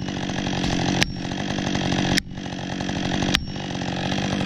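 An axe knocks sharply against a wedge three times.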